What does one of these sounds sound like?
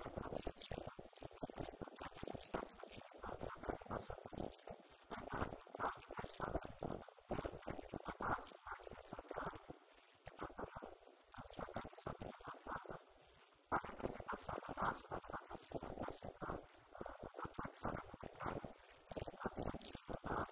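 A man speaks steadily into a microphone, heard through loudspeakers in an echoing room.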